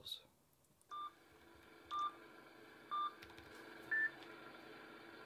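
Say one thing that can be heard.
A countdown beeps once each second.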